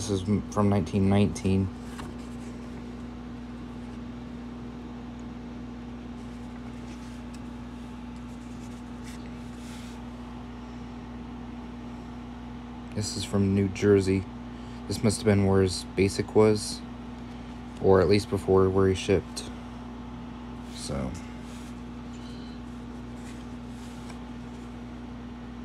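Paper rustles softly as old cards and letters are handled.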